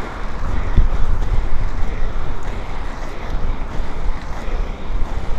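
Wind buffets a microphone outdoors.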